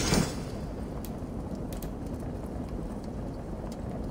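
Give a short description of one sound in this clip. Soft menu clicks sound.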